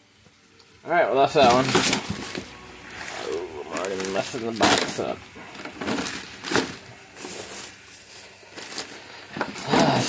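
A plastic bag crinkles and rustles up close.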